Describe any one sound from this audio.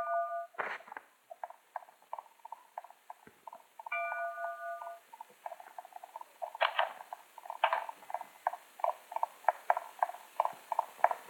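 Quick footsteps tap steadily on a wooden floor.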